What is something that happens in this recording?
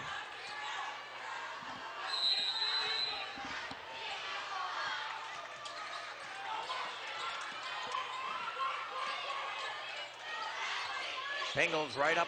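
A large crowd murmurs and cheers in an echoing gym.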